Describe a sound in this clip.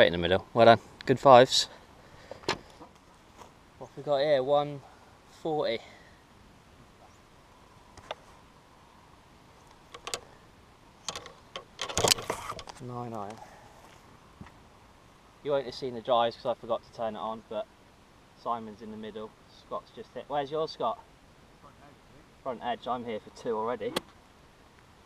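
A man speaks close by, casually.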